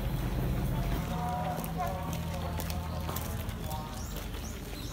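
A crowd of people murmurs and talks outdoors.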